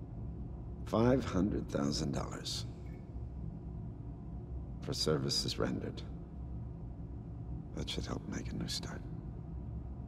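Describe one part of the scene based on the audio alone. A middle-aged man speaks calmly and closely.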